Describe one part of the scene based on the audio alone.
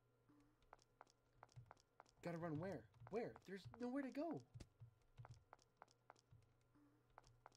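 Footsteps tap quickly at an even pace.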